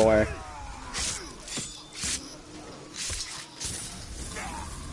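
A blade slashes and strikes with sharp, heavy thuds.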